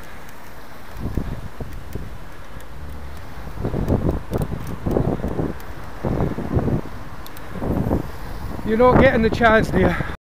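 Wind buffets loudly in gusts outdoors.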